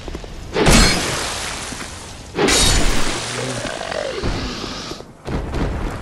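A fiery spell bursts with a loud roar.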